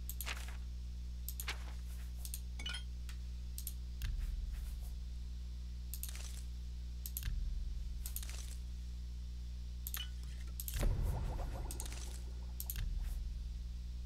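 Short game menu clicks sound as items are picked.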